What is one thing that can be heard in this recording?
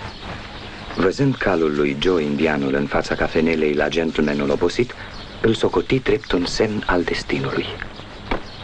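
A man speaks loudly.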